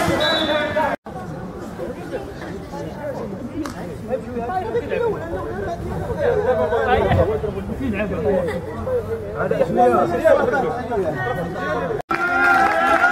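Several men talk and call out excitedly close by.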